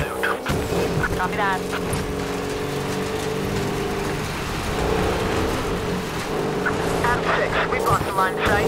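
Tyres crunch and skid on loose dirt.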